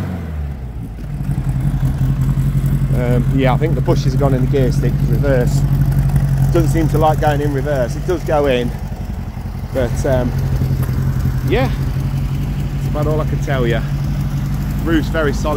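A van engine idles with a steady low rumble.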